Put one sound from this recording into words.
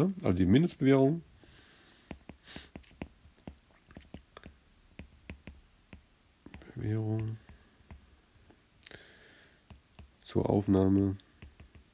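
A stylus taps and scratches on a tablet surface.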